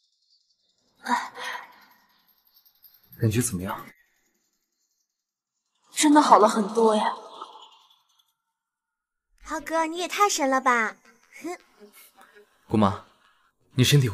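A woman speaks in a strained, groaning voice nearby.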